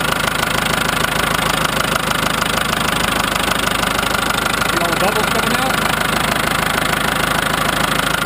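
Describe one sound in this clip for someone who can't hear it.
A diesel engine idles with a steady rapid rumble close by.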